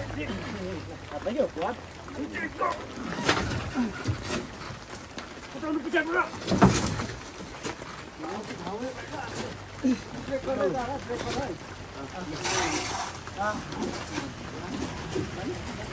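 A heavy motorcycle clunks and knocks as men push it onto a pickup's metal bed.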